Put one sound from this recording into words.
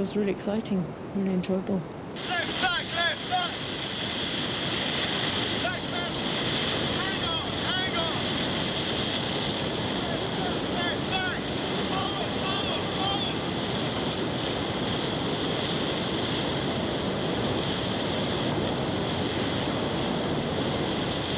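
Whitewater rapids roar and churn loudly.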